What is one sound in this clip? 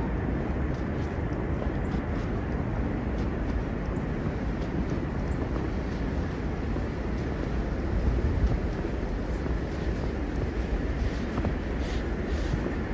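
Footsteps crunch softly in snow.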